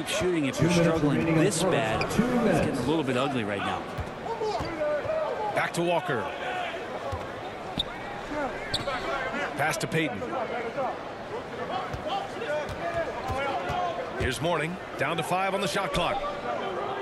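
A crowd murmurs and cheers in a large arena.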